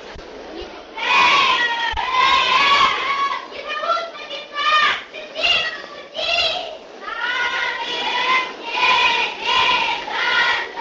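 Children sing together in chorus outdoors.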